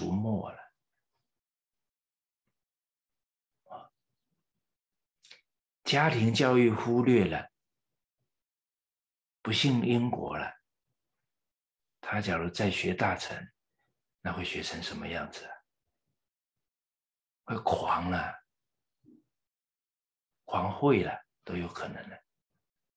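An older man speaks calmly in short phrases, close to a microphone.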